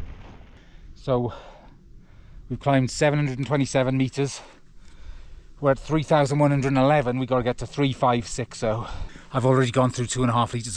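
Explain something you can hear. An older man talks animatedly, close to the microphone.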